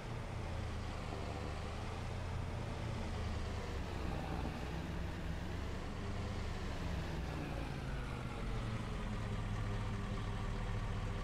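A car engine hums steadily as it drives along.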